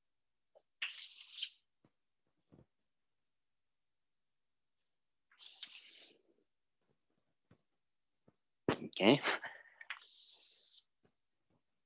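Chalk scratches and taps on a blackboard in short bursts.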